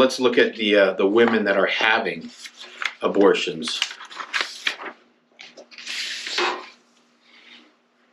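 Paper rustles as sheets are handled.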